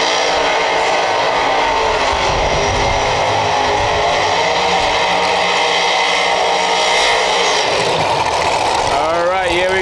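Tyres screech and squeal as a race car spins its wheels.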